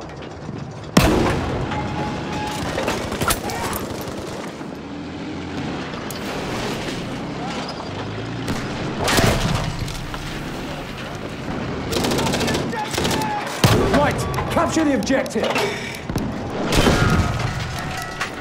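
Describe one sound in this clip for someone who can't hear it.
A tank cannon fires with heavy booms.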